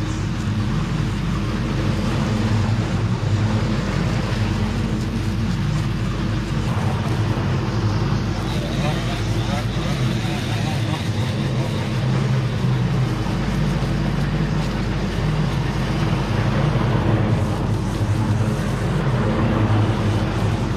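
A mower engine drones steadily close by.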